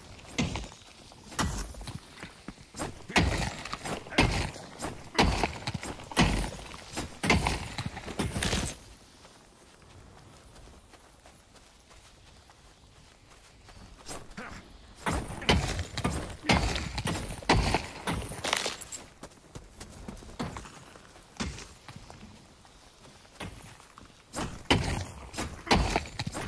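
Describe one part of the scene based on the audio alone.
A pickaxe strikes rock again and again, with sharp clangs and cracks.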